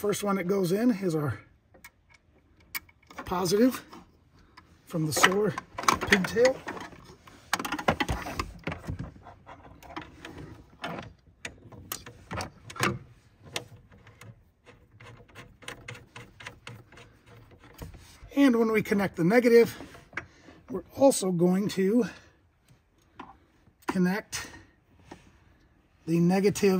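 Metal parts click and clink as they are handled.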